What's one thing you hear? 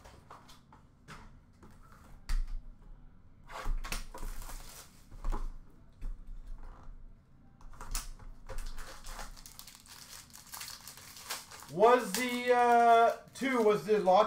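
Cards and plastic cases rustle and click as hands handle them.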